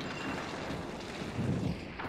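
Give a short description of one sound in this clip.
Flames crackle and roar briefly.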